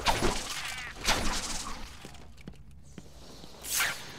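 Footsteps tap on a tiled floor.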